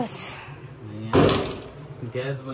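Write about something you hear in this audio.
A door knocks open.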